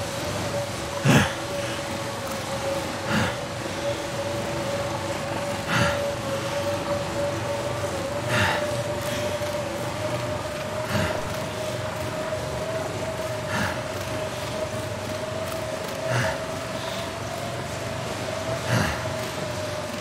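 Footsteps crunch slowly through deep snow.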